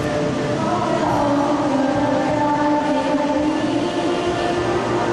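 A wind band plays along with the choir.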